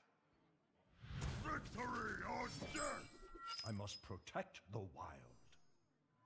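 Game cards are dealt with chiming, swooshing effects.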